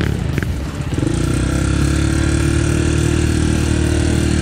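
A second dirt bike engine idles steadily close by.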